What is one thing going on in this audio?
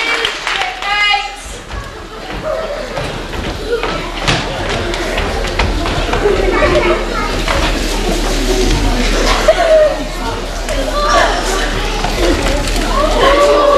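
Feet thud on a wooden stage floor.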